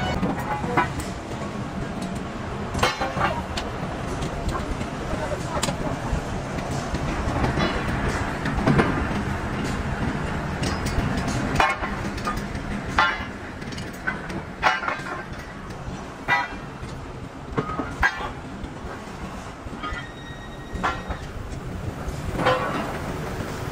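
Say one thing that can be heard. Heavy steel bars clang and bang against each other as they are loaded.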